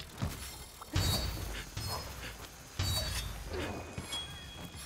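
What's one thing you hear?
Magical effects crackle and shimmer.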